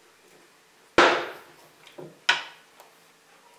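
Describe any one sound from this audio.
A mallet strikes a wooden block with sharp knocks.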